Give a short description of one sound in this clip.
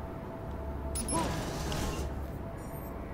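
A metal roller door rattles open.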